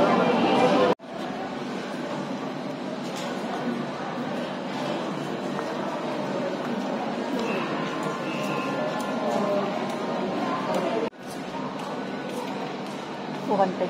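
People talk quietly in a room nearby.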